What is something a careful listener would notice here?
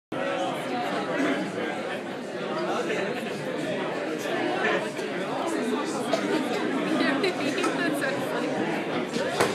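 An electric bass guitar plays a rhythm.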